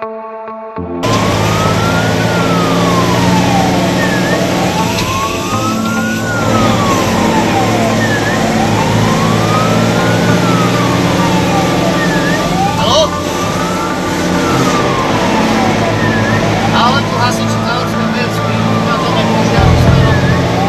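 A siren wails up and down steadily.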